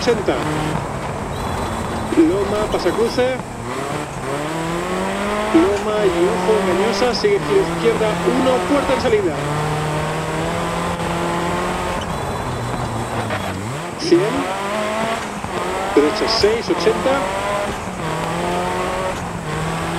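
A rally car engine revs high, rising and falling as the gears change.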